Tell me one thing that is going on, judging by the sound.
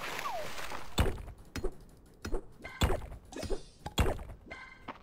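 A pickaxe chips at rock with short sharp clicks.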